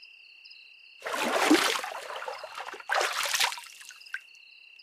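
Water splashes loudly in a bathtub.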